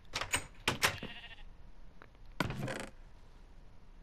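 A wooden chest opens with a creak.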